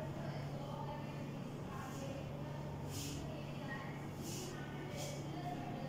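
A duster rubs against a whiteboard.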